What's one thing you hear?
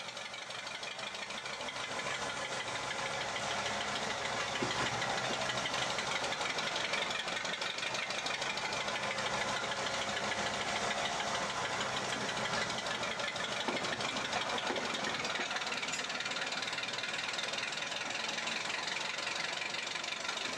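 A small model locomotive hums and rattles along the tracks.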